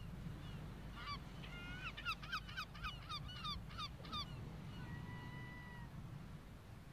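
A seagull cries overhead.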